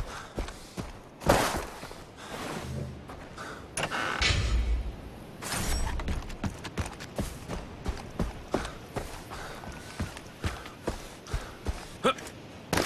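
Footsteps crunch steadily over loose stones.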